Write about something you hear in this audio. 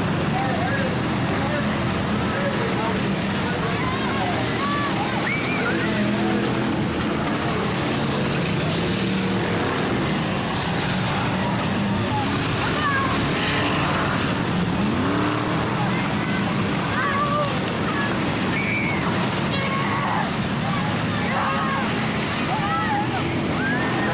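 Race car engines roar steadily around a dirt track.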